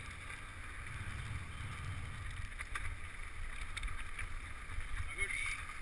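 Bicycle tyres roll and crunch over a bumpy dirt track.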